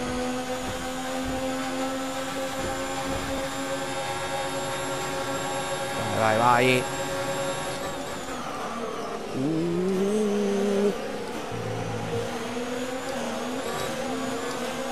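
A racing car engine screams at high revs.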